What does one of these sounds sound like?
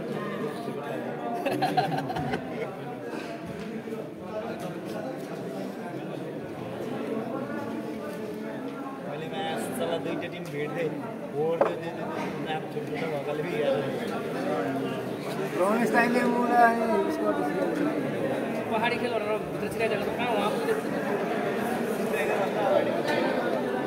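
A crowd of young men chatter and call out across a large echoing indoor hall.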